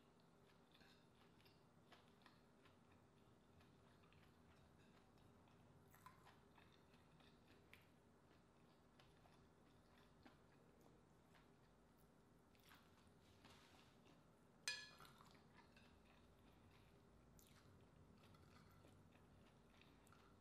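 Fingers squish soft rice on a plate.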